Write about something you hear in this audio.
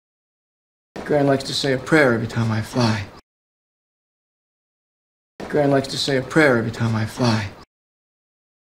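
A middle-aged man speaks cheerfully, close by.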